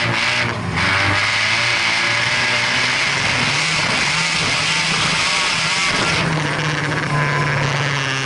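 Gravel sprays and rattles against the underside of the car.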